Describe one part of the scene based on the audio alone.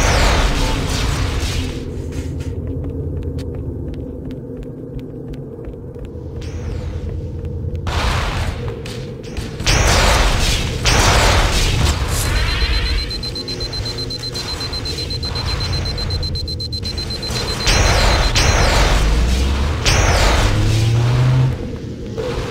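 Energy weapon bolts fire and sizzle on impact.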